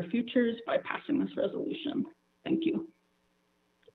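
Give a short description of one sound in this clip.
A woman speaks calmly over a phone line in an online call.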